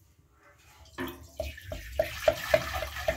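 Water pours into a metal vessel.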